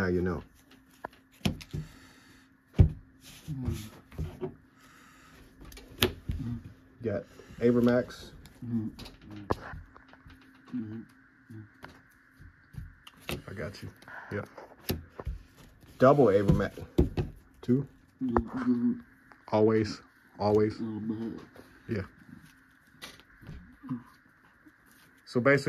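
Playing cards slap and slide on a play mat.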